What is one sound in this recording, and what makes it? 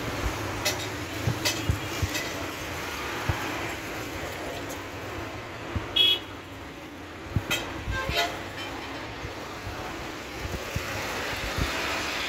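A paintbrush taps and dabs against a metal panel.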